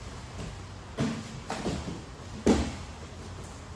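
Bodies thump and slide on padded mats.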